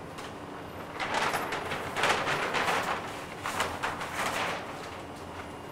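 Large paper sheets rustle as they are flipped over.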